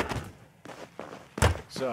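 Footsteps pad quickly on a carpeted floor.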